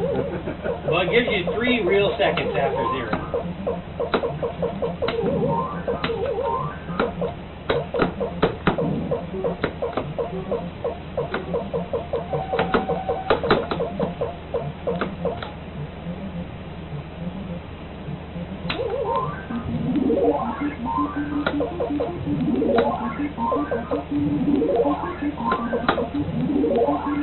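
An early arcade game plays bleeping and chirping sound effects.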